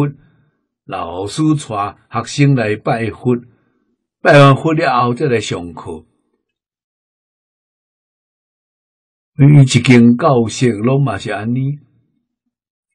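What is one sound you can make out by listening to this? An elderly man speaks calmly and warmly, close to a microphone, with pauses.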